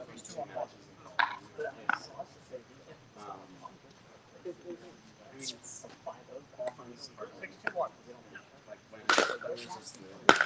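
Men talk casually nearby, outdoors.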